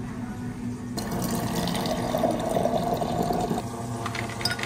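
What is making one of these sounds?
Water runs from a tap into a glass.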